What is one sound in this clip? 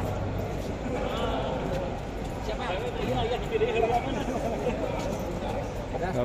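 A crowd of men chatters in the background.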